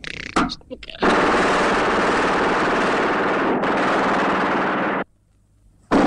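A machine gun fires a long, rapid burst.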